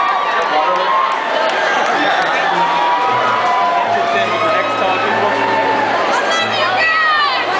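A crowd cheers and shouts.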